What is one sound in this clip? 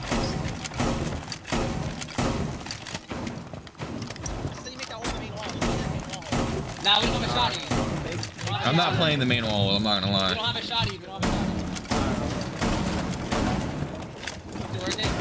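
Wooden walls splinter and crack as shots tear through them.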